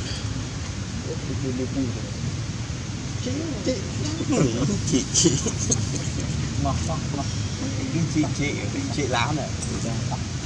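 A baby monkey squeaks and whimpers.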